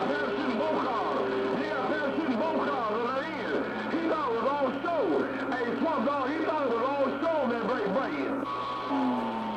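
Tones squeal and wobble through radio static.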